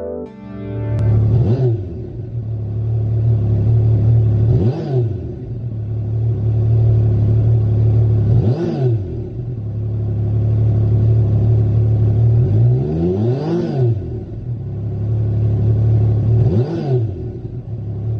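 A motorcycle engine revs up sharply several times.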